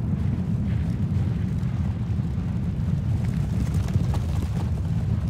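Many horses' hooves rumble in a dull steady drumming.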